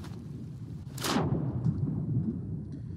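A body splashes into the sea.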